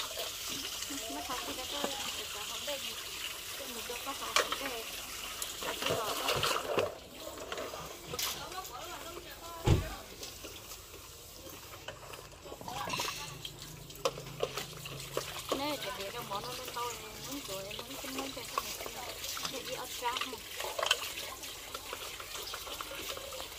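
Metal bowls and dishes clink and knock together.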